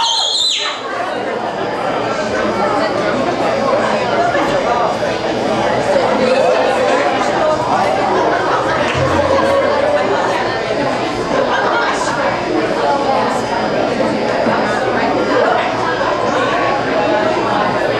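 A rock band plays loudly with distorted electric guitars in an echoing hall.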